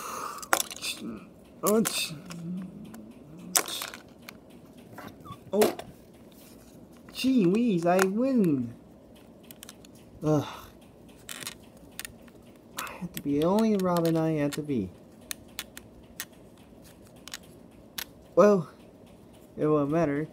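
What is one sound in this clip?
Small plastic pieces click and snap together close by.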